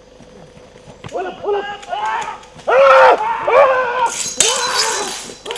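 Men shout aggressively.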